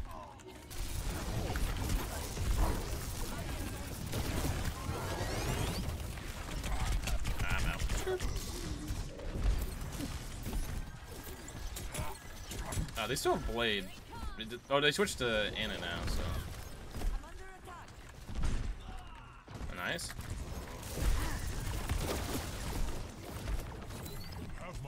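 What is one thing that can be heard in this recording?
Electric beam weapons crackle and buzz.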